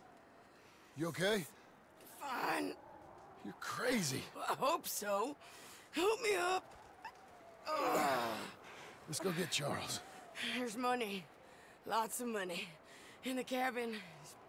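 A young man talks calmly into a microphone.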